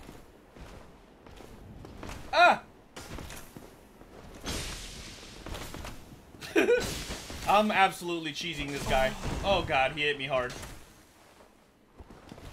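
Metal armour clanks with heavy footsteps on stone.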